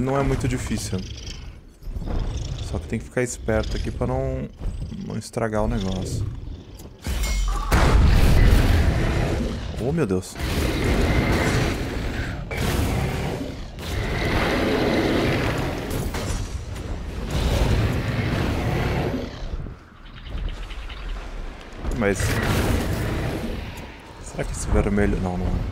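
Wind rushes past steadily as a dragon flies fast.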